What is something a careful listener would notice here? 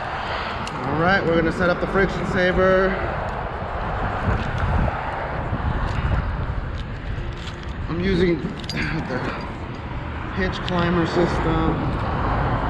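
A man talks close by in short bursts.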